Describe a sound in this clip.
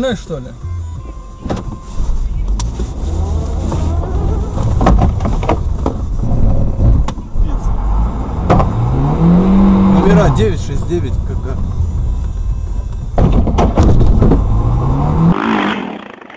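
Tyres roll over a snowy road.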